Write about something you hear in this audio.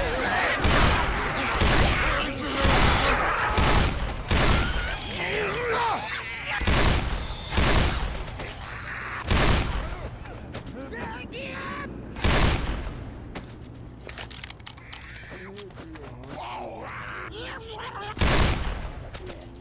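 A revolver fires loud shots that echo.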